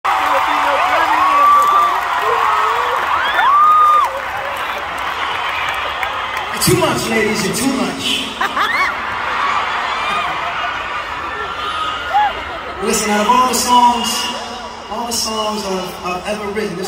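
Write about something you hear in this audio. A large crowd cheers and screams in a big echoing arena.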